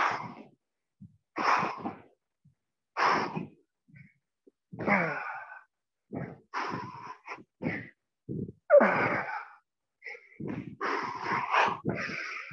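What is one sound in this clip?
Sneakers thud and squeak on a wooden floor as a man jumps.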